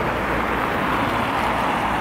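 A car drives past on a snowy road.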